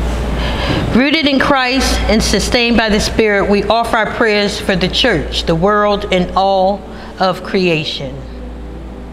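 A woman speaks into a microphone in an echoing hall.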